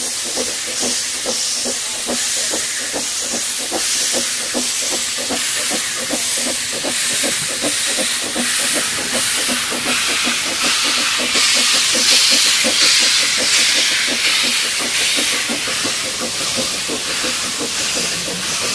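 A steam locomotive chuffs rapidly and steadily.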